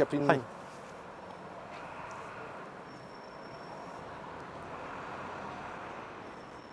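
Street traffic hums steadily in the background outdoors.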